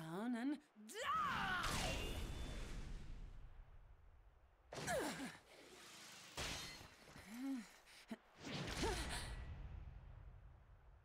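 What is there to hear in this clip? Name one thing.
A heavy blow lands with a booming, echoing crash.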